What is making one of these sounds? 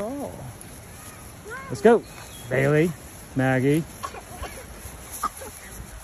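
A dog runs through tall grass, rustling.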